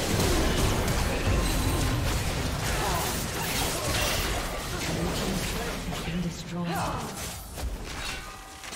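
Magic spell effects whoosh, crackle and burst in a busy fight.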